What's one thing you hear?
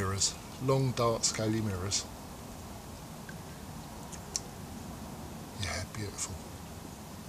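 An older man speaks calmly close by.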